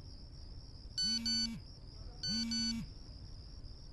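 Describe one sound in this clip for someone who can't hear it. A mobile phone's keys beep as they are pressed.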